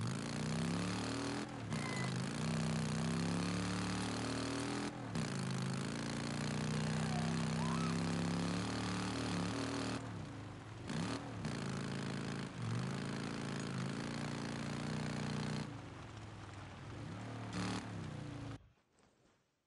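A motorcycle engine roars steadily, revving up and down as it rides along.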